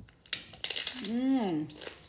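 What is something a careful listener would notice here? A crisp tostada shell crunches as a woman bites into it.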